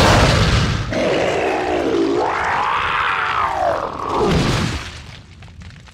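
A creature lets out a loud, rasping, wavering scream.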